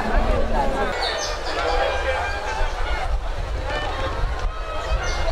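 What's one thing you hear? A crowd of women chatter all around outdoors.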